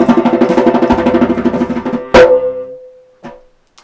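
A hand drum is played in a fast rhythm, ending in one loud slap.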